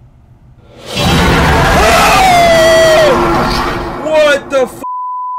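A young man screams loudly in fright.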